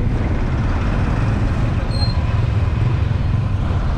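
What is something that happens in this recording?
Motorbikes pass close by, engines buzzing.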